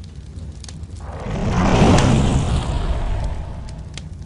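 A fireball bursts with a deep roaring whoosh and slowly dies away.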